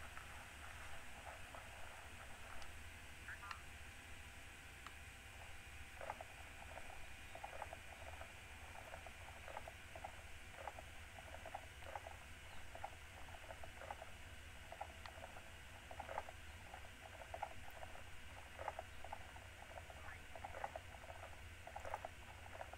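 Hooves clop rhythmically on a path as an animal trots.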